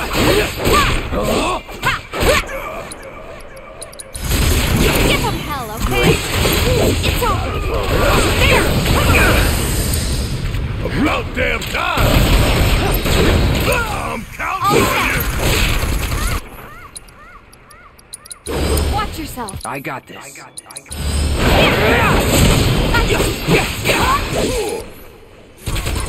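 Swords clash and slash in a fast video game battle.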